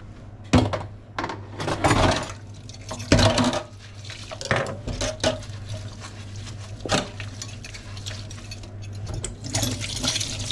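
Water sloshes in a sink.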